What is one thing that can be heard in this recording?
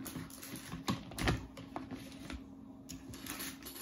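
Stacks of paper bundles rustle and thump as they are lifted.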